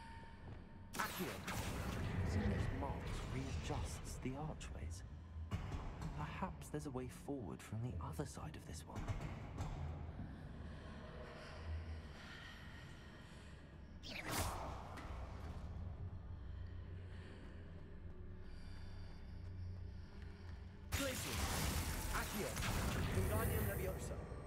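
A magic spell crackles and hums loudly.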